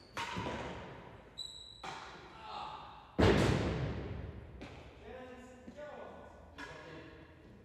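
A racquet strikes a ball with a sharp crack.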